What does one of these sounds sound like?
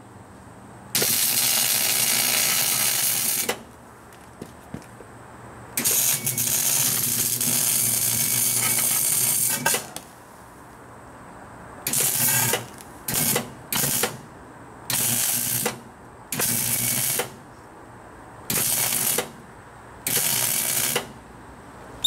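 An arc welder crackles and buzzes in short bursts.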